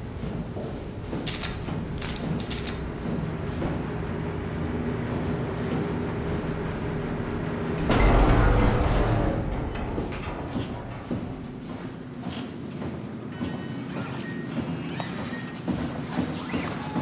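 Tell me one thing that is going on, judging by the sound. Machinery hums low and steadily.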